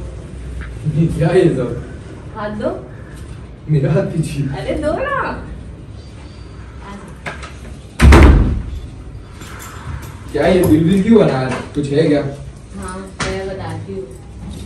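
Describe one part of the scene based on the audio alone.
A young woman talks excitedly nearby.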